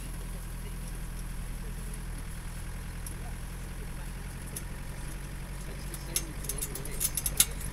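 Tyres roll over a dirt track.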